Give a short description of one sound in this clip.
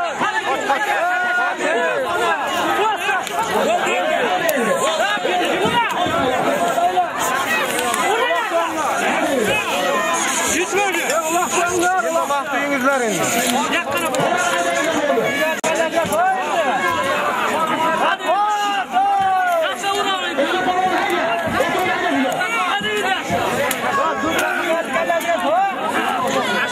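A crowd of men shout and yell close by.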